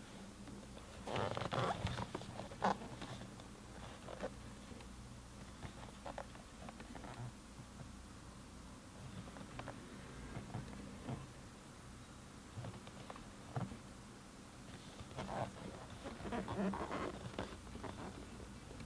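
Hands turn a cardboard box, which rustles and scrapes against their fingers.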